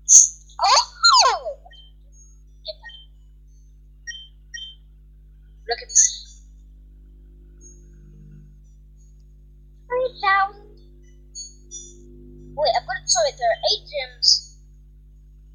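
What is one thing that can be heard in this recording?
Short electronic menu blips sound from a handheld game.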